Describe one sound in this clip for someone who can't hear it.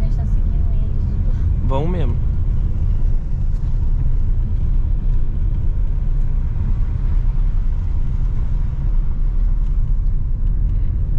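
Tyres rumble and crunch over a rough dirt road.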